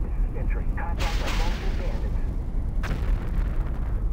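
Missiles launch with sharp whooshing bursts.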